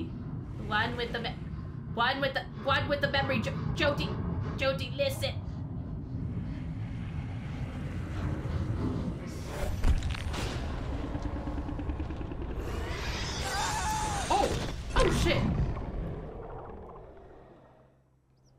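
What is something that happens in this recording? A deep, roaring hum of magical energy fills the air.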